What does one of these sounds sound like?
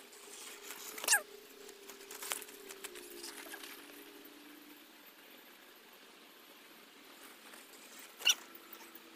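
Bicycle tyres scrape and skid on rock.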